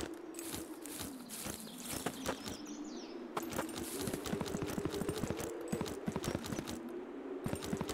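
Footsteps tread on grass.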